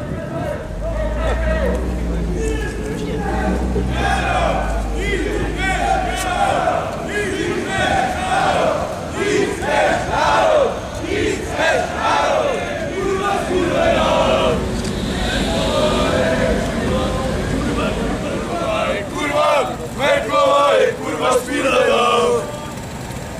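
A man shouts slogans through a megaphone outdoors.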